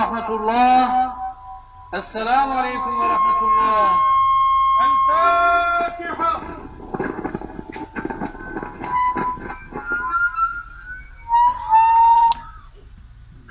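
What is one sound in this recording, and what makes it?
A man chants a prayer aloud through a loudspeaker, in a slow melodic voice.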